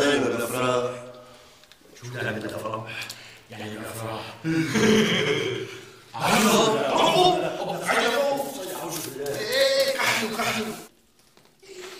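A man speaks loudly with animation, close by.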